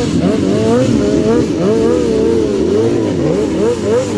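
A motorcycle's rear tyre screeches as it spins on the asphalt.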